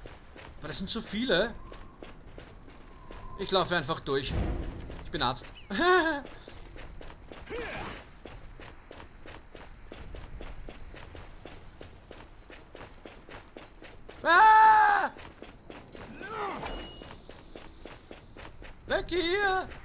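Quick footsteps crunch over dry ground.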